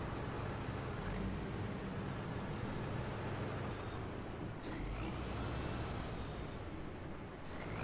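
A vehicle engine rumbles steadily as it drives slowly.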